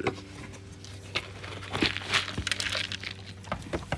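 A plastic scoop rustles through dry grain in a bucket.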